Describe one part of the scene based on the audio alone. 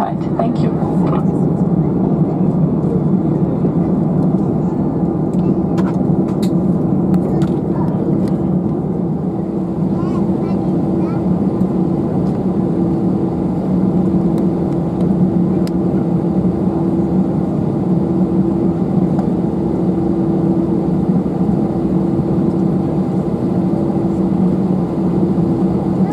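A jet airliner's engines hum steadily from inside the cabin as the plane taxis.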